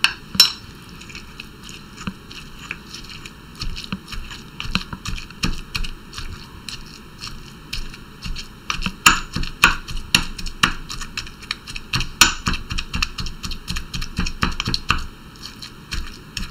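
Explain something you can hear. A pestle thumps and grinds in a stone mortar.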